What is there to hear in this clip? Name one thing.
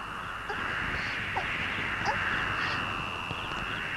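A young woman cries out in fear.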